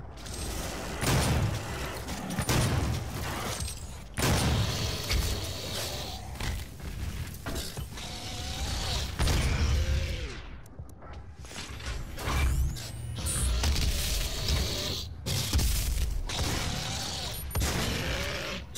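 Explosions burst with deep booms.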